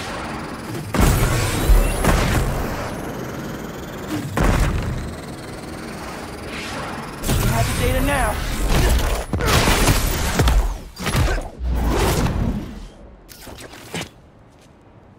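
Sharp whooshes sweep past in quick bursts.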